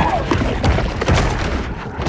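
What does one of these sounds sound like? A shark's jaws snap shut as it bites.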